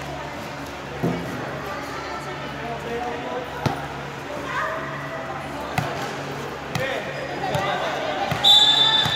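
A volleyball thumps off hands and arms now and then.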